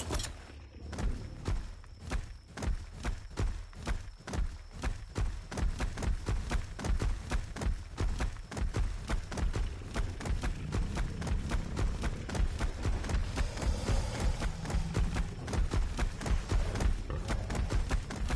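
Heavy creature footsteps thud quickly and steadily.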